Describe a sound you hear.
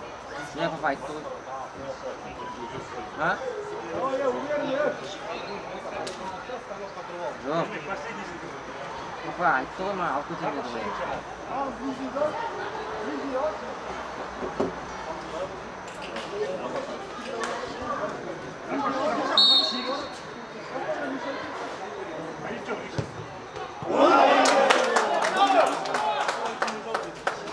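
Several men shout and call out across an outdoor court.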